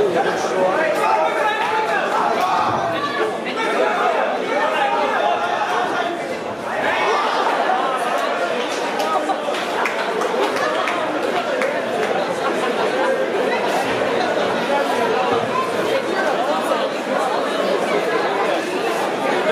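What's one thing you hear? A crowd of spectators chatters throughout a large echoing hall.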